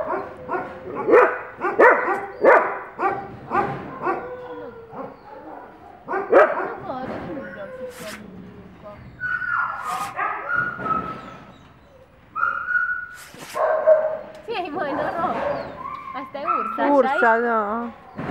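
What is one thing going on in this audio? A young woman talks softly and warmly up close.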